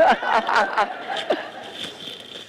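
A woman laughs heartily through a microphone.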